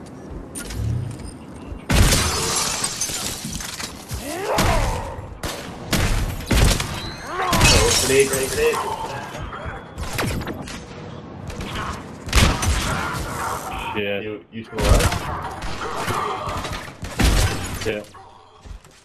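Gunfire and blasts from a video game crackle and boom in bursts.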